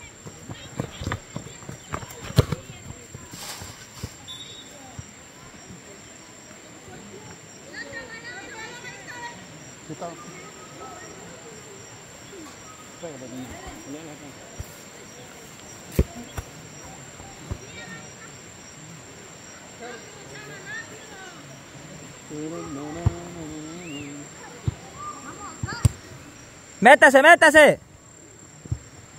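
A football is kicked with dull thumps on grass.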